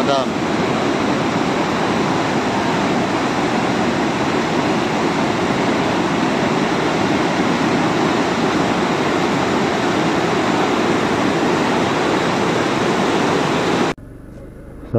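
Water rushes loudly over a weir and churns downstream.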